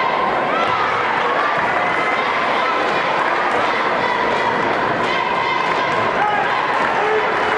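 A crowd in a large echoing gym cheers and chatters steadily.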